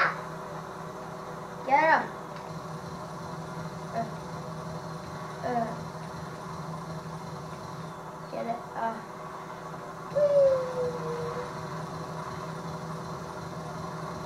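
A video game helicopter hums steadily through a television speaker.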